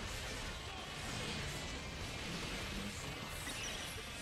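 Swords clash and strike rapidly.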